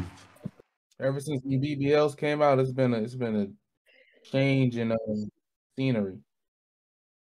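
A man talks casually over an online call.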